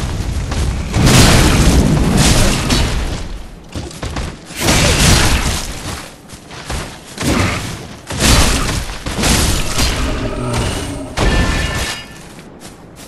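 Heavy blows land with loud crashes and bursts of fire.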